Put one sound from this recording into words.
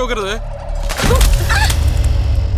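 Food splatters wetly against a face with a heavy thud.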